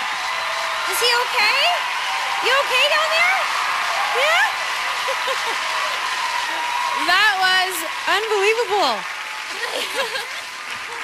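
A woman speaks with animation into a microphone over a loudspeaker.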